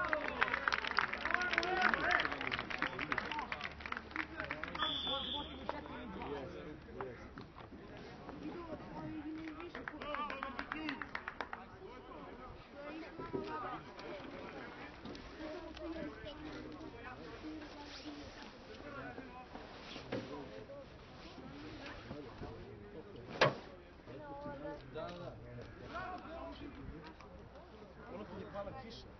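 Men shout and call to each other across an open field, some way off.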